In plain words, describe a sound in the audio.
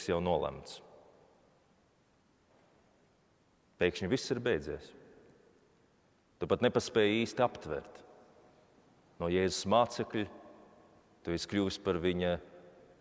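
A man speaks calmly in short phrases through a microphone in a large echoing hall.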